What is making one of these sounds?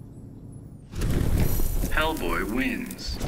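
A flaming burst roars loudly.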